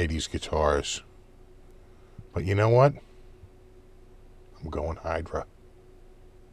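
A middle-aged man speaks calmly and close to a microphone, in short phrases.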